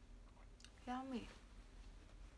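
A young woman speaks briefly and softly up close.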